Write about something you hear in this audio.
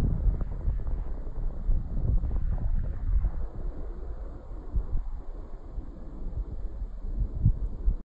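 Shallow water laps gently over sand.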